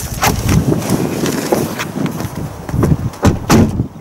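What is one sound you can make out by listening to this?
A car drives along a gravel road.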